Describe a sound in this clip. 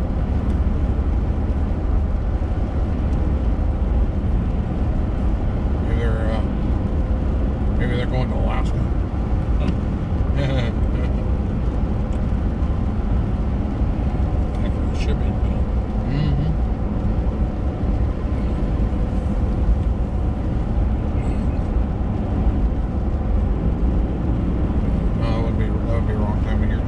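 Raindrops patter on a windscreen.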